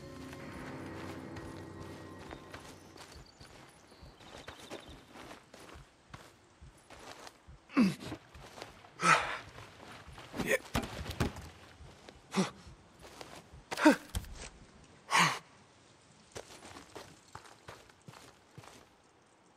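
Footsteps crunch on gravel at a steady jog.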